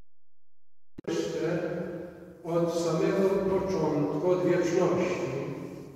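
A man chants slowly through a microphone in a large, echoing hall.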